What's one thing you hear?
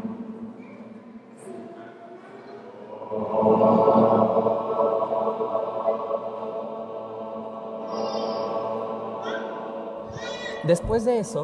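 A group of young people hum a long, steady note together in an echoing hall.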